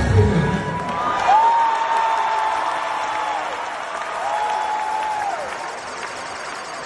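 A large crowd cheers and chatters.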